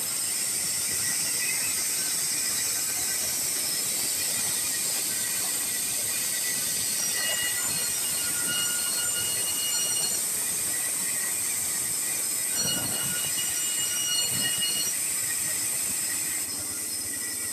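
A band saw blade cuts through wood with a high rasping hiss.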